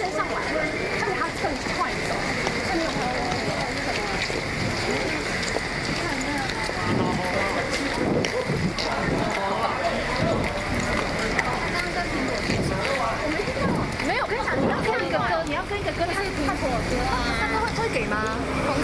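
A crowd of men and women talk and shout over each other close by.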